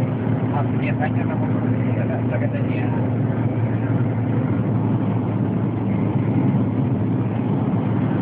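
A car engine hums steadily at speed from inside the car.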